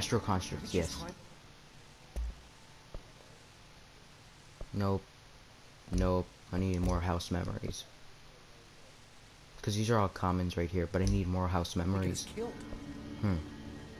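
Soft interface clicks sound as menu options change.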